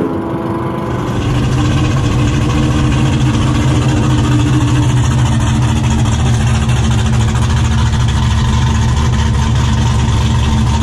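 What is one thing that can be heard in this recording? A car engine idles loudly close by with a heavy, throbbing rumble.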